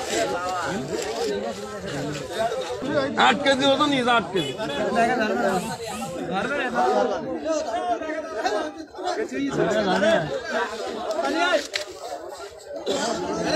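Several men talk loudly and excitedly close by, outdoors.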